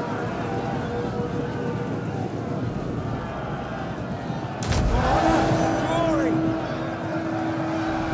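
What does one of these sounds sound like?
A large crowd of soldiers shouts and clamours in battle.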